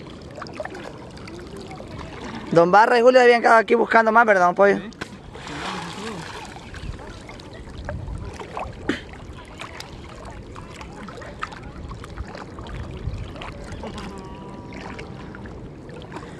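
Water sloshes and swishes as a man wades through a river.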